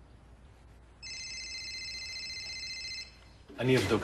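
A phone beeps with a steady electronic tone.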